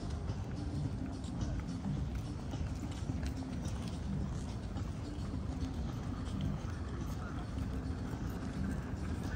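Footsteps tap steadily on paving close by.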